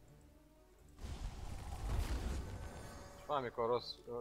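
Magic blasts burst and crackle in a battle.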